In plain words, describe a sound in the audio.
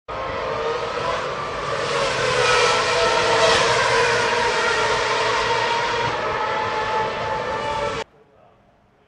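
Racing car engines roar together.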